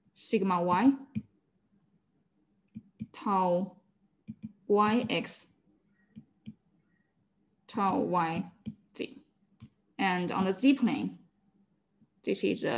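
A young woman speaks calmly in short phrases over an online call.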